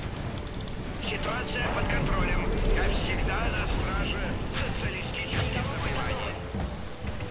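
Rockets whoosh and explode in bursts.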